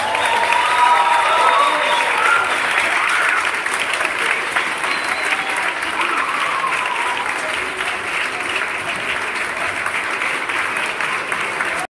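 An audience applauds and cheers.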